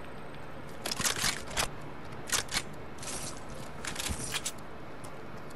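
Footsteps crunch quickly over rough ground.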